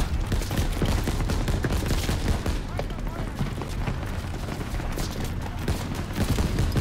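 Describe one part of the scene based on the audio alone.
Gunfire crackles all around in a battle.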